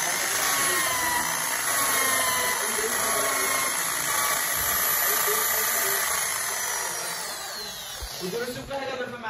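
A power grinder whirs steadily at a high pitch, then winds down.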